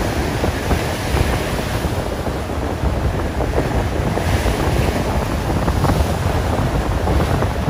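Rough surf crashes and churns steadily close by.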